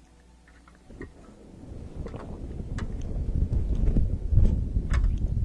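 A young woman sips loudly through a straw.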